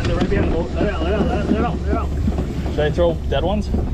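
Water sloshes and splashes as a hand stirs it.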